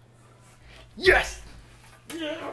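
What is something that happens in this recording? A young man shouts loudly close by.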